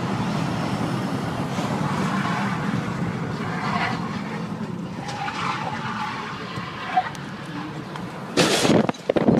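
A car engine hums and tyres rumble on the road.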